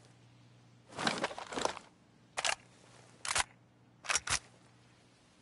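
Gear clicks and rattles as a rifle is raised.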